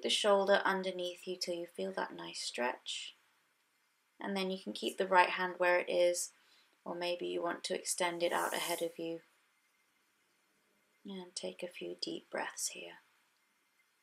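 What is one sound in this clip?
A woman speaks calmly and slowly, close to the microphone.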